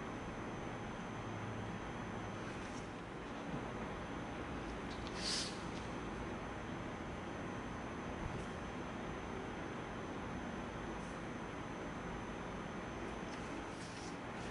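A craft knife scratches softly as it cuts through paper.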